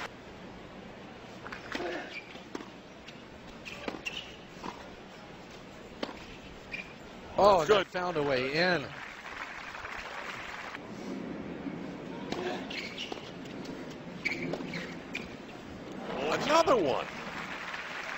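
A tennis ball is struck back and forth with sharp pops of the racket.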